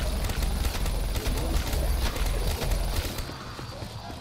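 A rapid-fire gun shoots in quick bursts with heavy booms.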